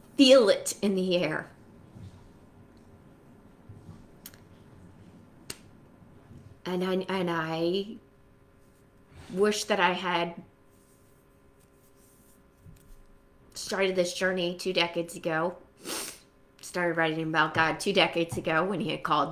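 A woman speaks calmly and with pauses, close to a microphone.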